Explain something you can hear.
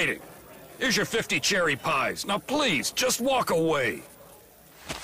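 A man speaks gruffly and with menace.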